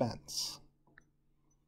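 A wash bottle squirts a hissing spray of liquid.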